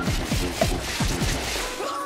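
An energy weapon fires with a sharp crackling zap.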